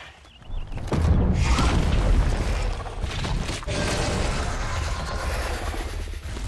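A large beast growls and roars loudly.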